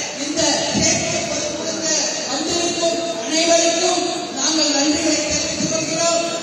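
A woman speaks forcefully into a microphone on a public address system.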